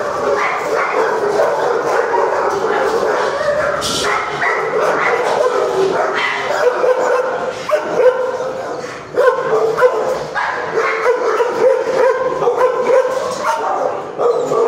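Dogs bark repeatedly in an echoing room.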